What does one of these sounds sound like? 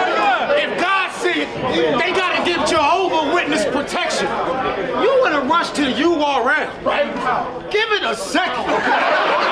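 A young man raps energetically into a microphone.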